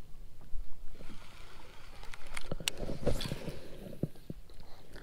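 Fishing line spools off a baitcasting reel with a whir during a cast.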